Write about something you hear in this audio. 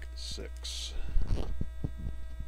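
A card pack is dropped onto a table with a light slap.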